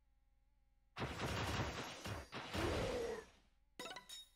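Magic blasts whoosh and crackle in noisy bursts.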